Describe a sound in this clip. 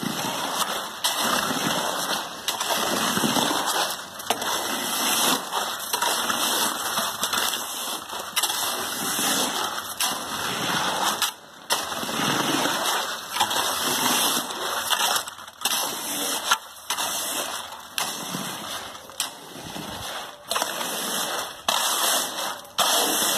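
Wet concrete squelches and sloshes as it flows.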